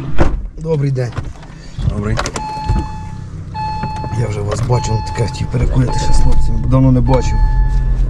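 A man answers in a low voice.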